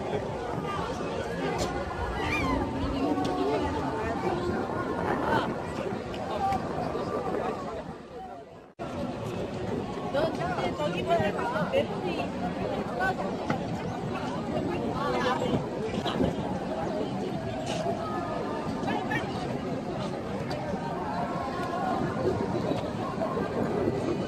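A crowd of people chatter outdoors around the listener.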